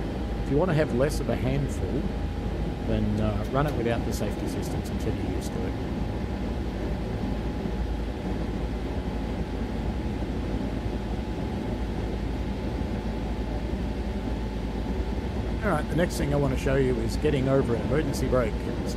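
A train engine rumbles low and steady.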